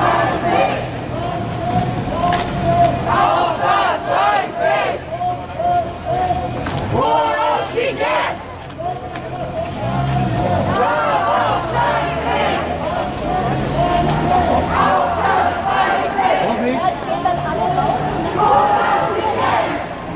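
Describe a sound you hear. Footsteps shuffle on pavement as a crowd walks.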